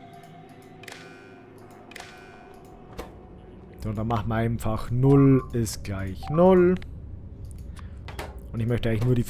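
Soft interface clicks sound as menus open and close.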